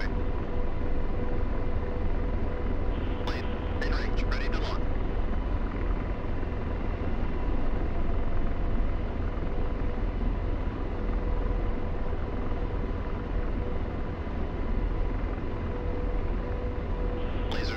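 A helicopter's engine and rotor drone steadily with a deep rumble.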